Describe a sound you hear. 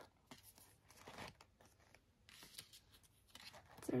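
Plastic sticker backing crackles softly as it is peeled.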